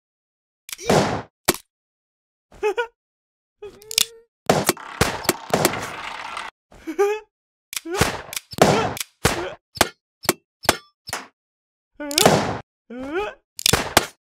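A young woman laughs and shrieks.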